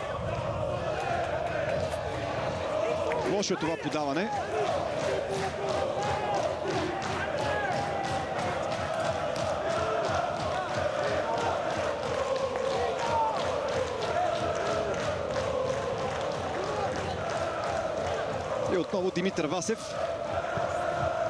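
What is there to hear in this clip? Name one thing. A crowd chants and cheers steadily in a stadium.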